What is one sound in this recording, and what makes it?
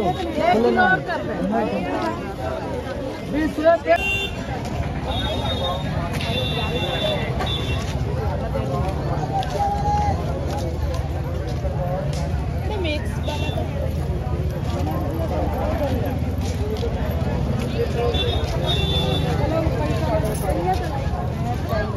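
A crowd of people chatter all around in a busy outdoor market.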